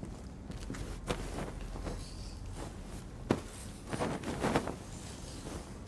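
A pillow rustles as it is picked up and handled.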